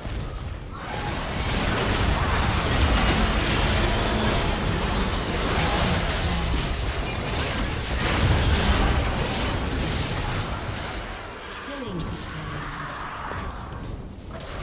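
Magic blasts and explosions crackle loudly during a video game battle.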